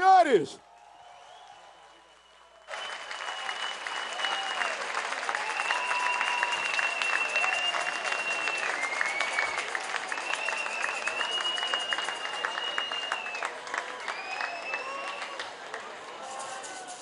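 Members of an audience whistle shrilly.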